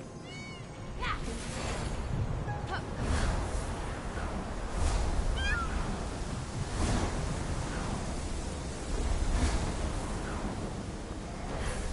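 Wings beat and wind rushes loudly during a swift flight.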